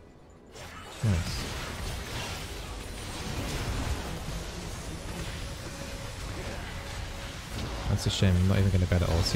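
Game spell effects whoosh and crackle in a battle.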